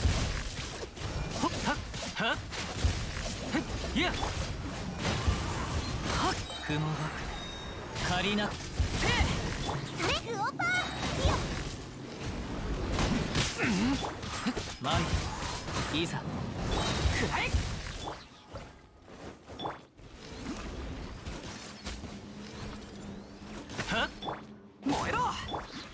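Magic blasts and sword slashes crackle and boom in quick bursts.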